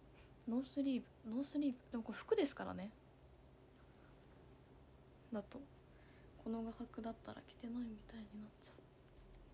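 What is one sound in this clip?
A young woman speaks softly and casually close to a microphone.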